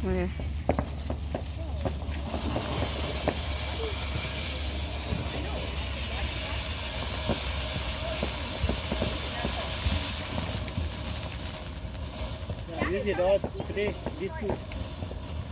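A firework fountain hisses and crackles.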